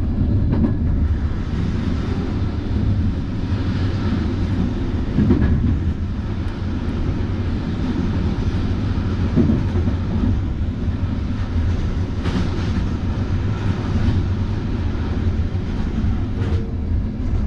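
A passing freight train roars by close outside the window.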